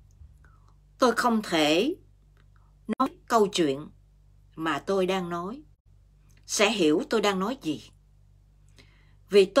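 A middle-aged woman speaks calmly and close up in short phrases with pauses.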